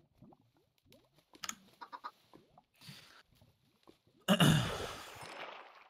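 A glass bottle shatters with a splash.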